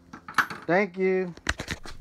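Metal tools clink and rattle.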